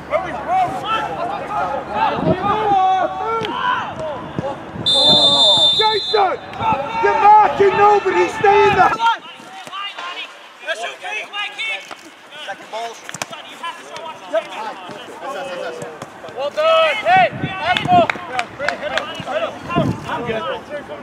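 Young men shout to one another across an open pitch outdoors.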